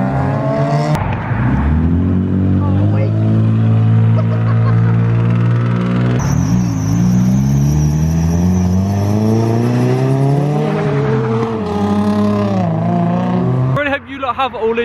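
A car engine revs loudly and drones as the car drifts past.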